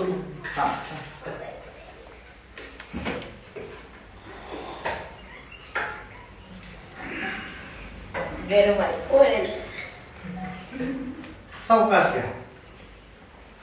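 Men talk calmly nearby.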